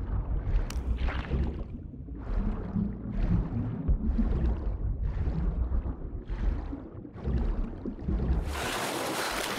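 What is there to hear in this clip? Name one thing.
Water swirls and gurgles in rhythmic surges as a swimmer strokes underwater.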